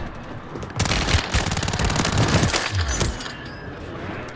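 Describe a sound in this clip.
A rifle fires a rapid burst of shots indoors.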